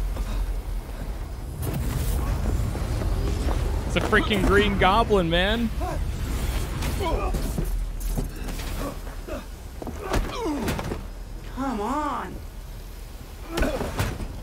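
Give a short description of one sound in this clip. A young man laughs and talks with animation into a close microphone.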